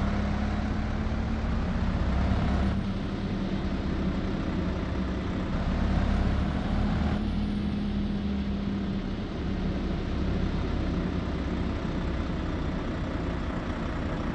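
A heavy truck engine hums and rumbles steadily.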